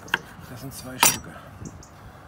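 A knife knocks on a wooden board.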